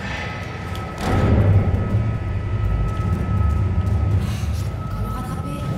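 A lift hums and rumbles as it rises.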